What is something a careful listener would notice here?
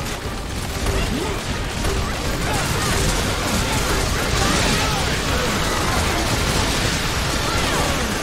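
Rapid laser gunfire blasts continuously.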